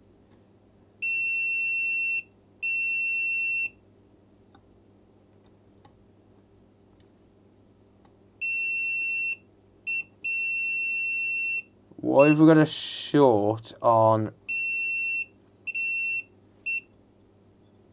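A continuity tester beeps with steady high tones, on and off.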